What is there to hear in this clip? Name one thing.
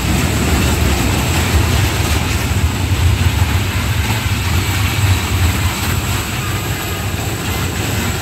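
A small ride train rumbles along its metal track.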